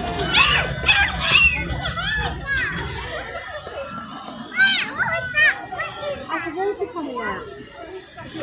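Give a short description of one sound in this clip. Young children shout and squeal excitedly close by.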